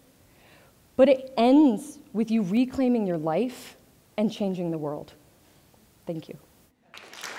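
A young woman speaks with animation through a microphone in a large hall.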